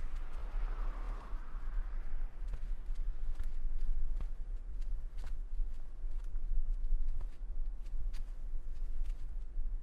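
Bare feet pad softly across a carpet.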